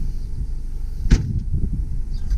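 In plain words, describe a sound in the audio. A car trunk lid slams shut with a loud thud.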